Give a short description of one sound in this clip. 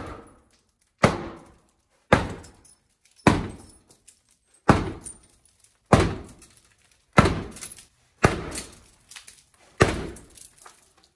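Glass cracks and crunches under the blows.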